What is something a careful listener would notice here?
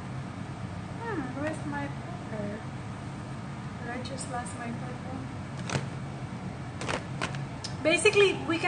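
A woman speaks close by, calmly and a little animated.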